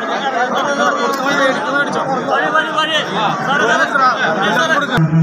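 A large outdoor crowd of men chatters and calls out loudly all around.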